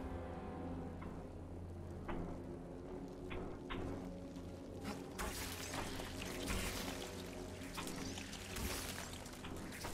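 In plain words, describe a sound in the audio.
A lightsaber hums and whooshes as it swings.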